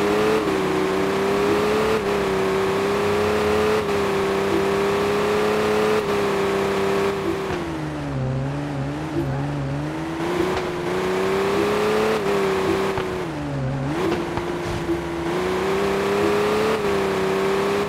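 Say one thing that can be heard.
A racing car engine whines steadily at high revs, dipping and rising as it shifts gears.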